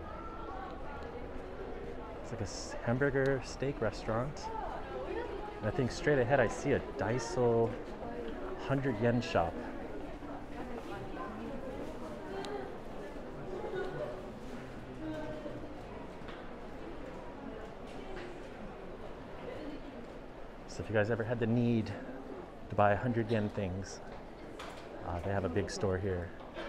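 A crowd murmurs softly in the background.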